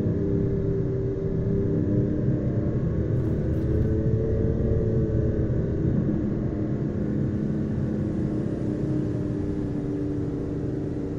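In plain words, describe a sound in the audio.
Tyres roll on a smooth road.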